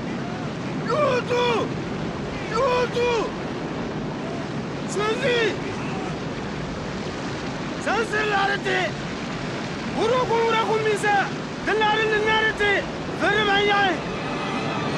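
Men shout in alarm, in short bursts.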